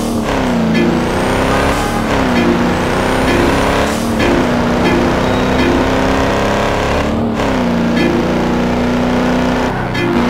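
A car engine revs high and drops in pitch with each gear change.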